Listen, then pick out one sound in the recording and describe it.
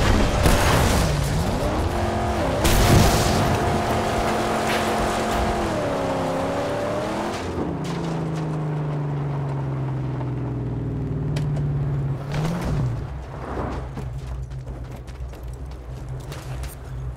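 A car engine roars and revs.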